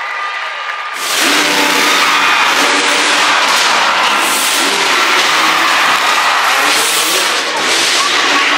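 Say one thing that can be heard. A large crowd cheers and applauds loudly.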